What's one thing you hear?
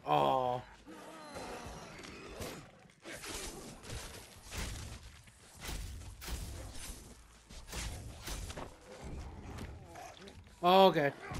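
Zombies groan and snarl.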